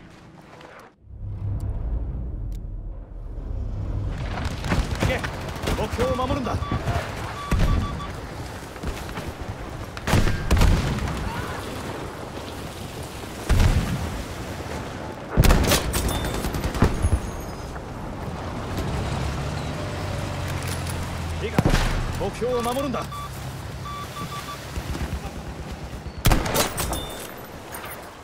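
Distant battle noise rumbles steadily.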